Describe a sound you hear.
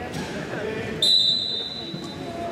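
A whistle blows sharply.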